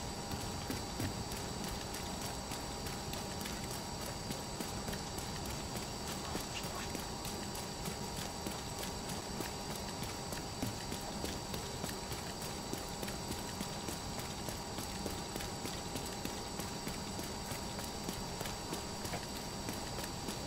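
Footsteps crunch steadily over gravel and debris.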